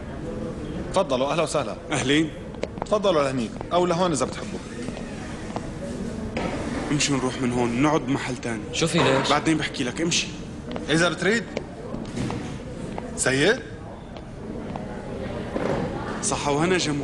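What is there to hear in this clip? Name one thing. Young men talk in turn, one speaking loudly with animation.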